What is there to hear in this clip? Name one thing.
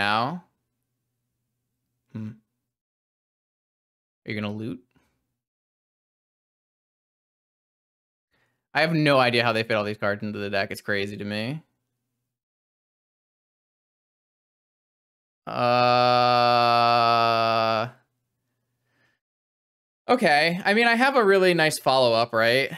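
A young man talks calmly into a close microphone, in short bursts.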